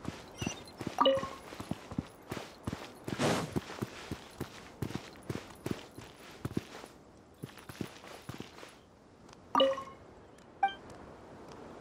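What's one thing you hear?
A bright chime rings out a few times.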